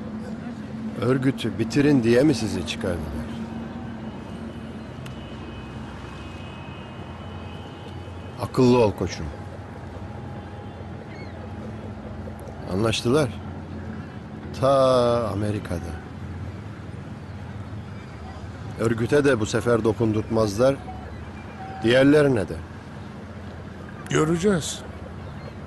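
A middle-aged man speaks in a low, tense voice, with pauses.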